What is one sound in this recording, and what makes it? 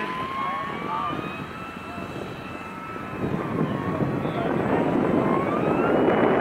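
A model plane's engine whines steadily overhead, its pitch rising as it comes closer.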